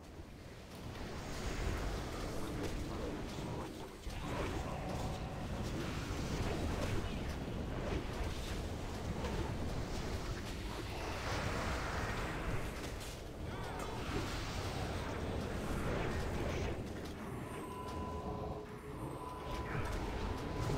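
Magic blasts and weapon strikes rumble and crash in a fierce battle.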